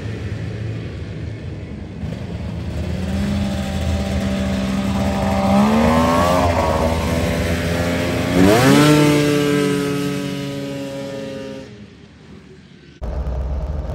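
A snowmobile engine revs and whines as it speeds past, then fades into the distance.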